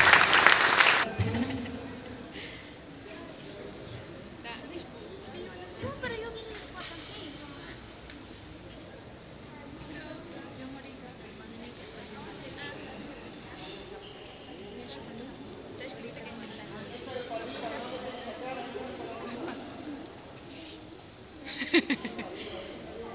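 A crowd of women and children chatters all around.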